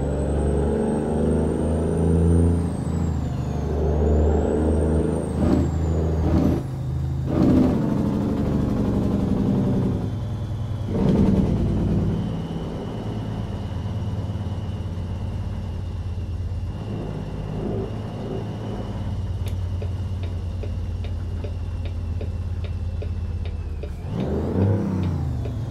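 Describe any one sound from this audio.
A truck's diesel engine rumbles steadily from inside the cab.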